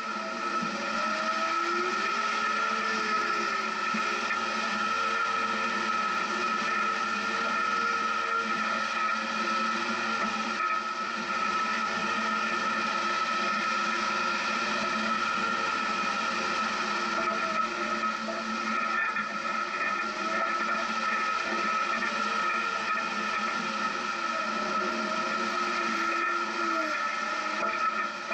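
A vehicle's engine hums and revs.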